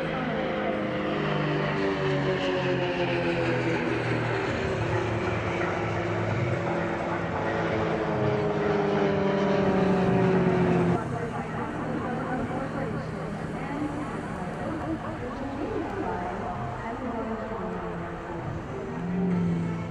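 Piston-engined aerobatic propeller planes drone overhead, the engine pitch shifting as they manoeuvre.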